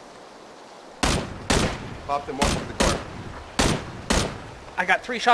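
A rifle fires a series of sharp single shots.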